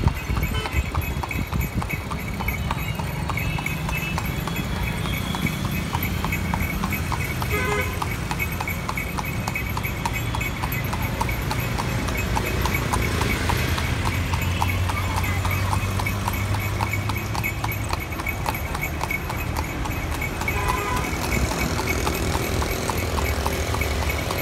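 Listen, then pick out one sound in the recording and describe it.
Auto-rickshaw engines putter past.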